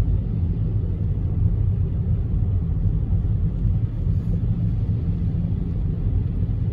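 A car engine rumbles low and steady from inside the moving car.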